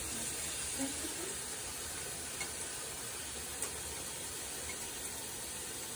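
Water simmers and hisses steadily in a pot.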